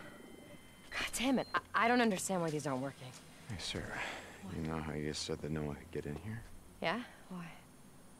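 A young woman talks close to a microphone.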